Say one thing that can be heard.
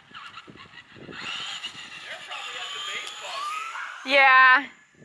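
A toy car's electric motor whines as it speeds along a road.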